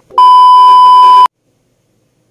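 A steady high test tone beeps briefly.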